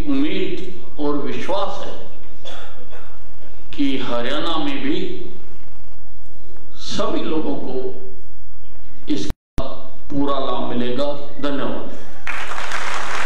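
An elderly man gives a speech through a microphone and loudspeakers, speaking forcefully.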